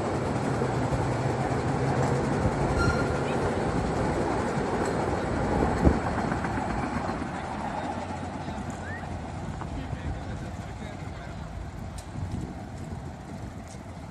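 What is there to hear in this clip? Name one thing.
A small train rumbles along its track and fades into the distance.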